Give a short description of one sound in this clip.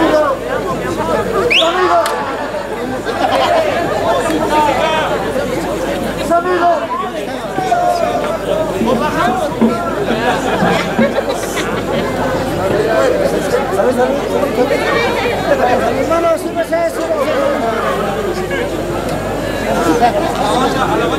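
A crowd of men and women chatter and call out all around.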